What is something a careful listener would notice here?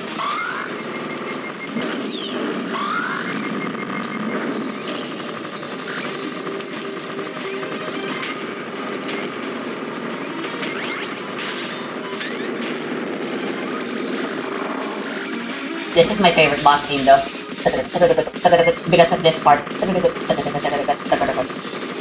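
Rapid electronic shooting effects chatter steadily.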